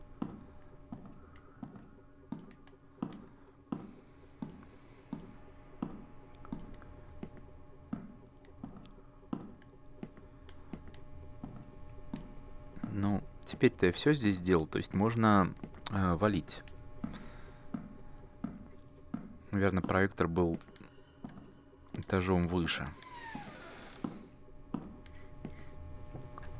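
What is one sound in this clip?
Slow footsteps fall on a hard floor in an echoing corridor.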